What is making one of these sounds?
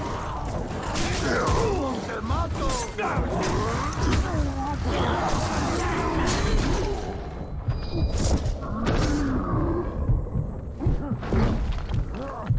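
Swords clang and slash in a fight.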